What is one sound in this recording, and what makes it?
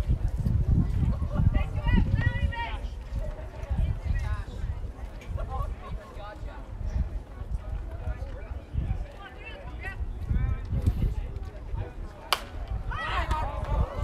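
Young men call out across an open field in the distance.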